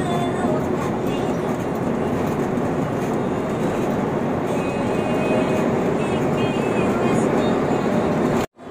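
Tyres rumble steadily on a highway, heard from inside a moving car.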